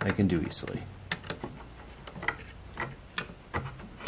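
A screwdriver turns a screw into wood.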